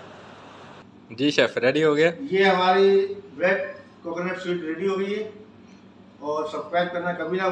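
A man speaks calmly and clearly, close by.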